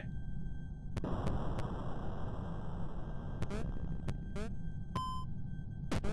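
Short electronic game sounds blip and chime.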